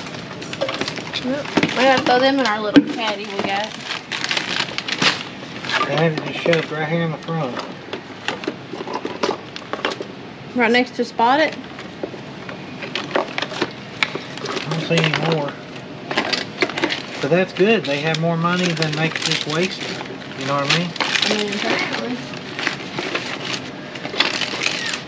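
Plastic wrappers and small items rustle and clatter as hands sort through them.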